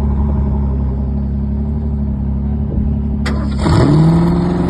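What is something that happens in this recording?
A V8 sports car idles with a deep, lumpy rumble.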